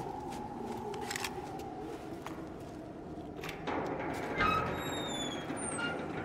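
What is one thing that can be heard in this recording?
A metal door creaks and swings open.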